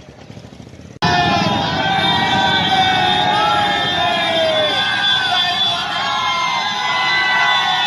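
A crowd cheers loudly outdoors.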